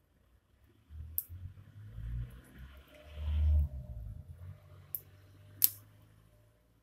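Fingers handle a wristwatch, rubbing close to the microphone.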